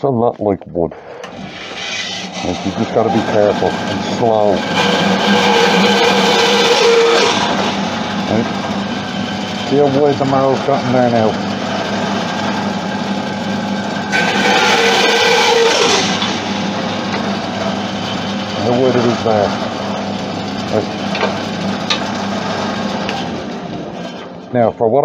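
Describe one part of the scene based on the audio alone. A band saw motor hums steadily.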